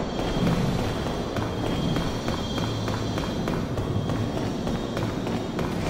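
Footsteps run quickly over stone.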